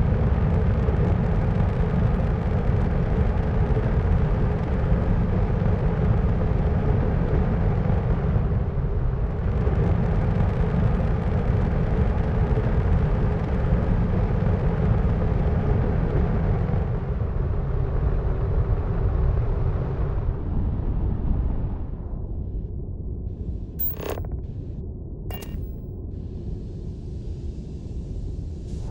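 A spaceship engine roars with a deep, steady rumble, then grows quieter.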